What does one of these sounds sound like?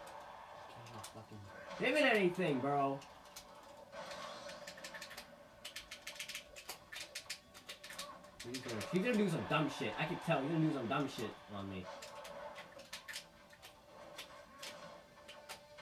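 Fighting game sound effects play from a television, with quick hits and bursts.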